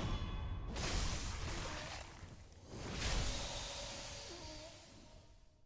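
A sword strikes with a heavy whooshing slash.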